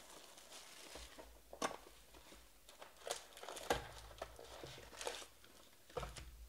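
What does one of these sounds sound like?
Cardboard boxes knock and rustle as they are handled.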